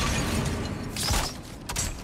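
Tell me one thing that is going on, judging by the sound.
An axe strikes with a sharp metallic clang.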